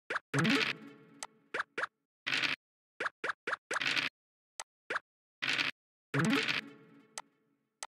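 A die rattles as it rolls.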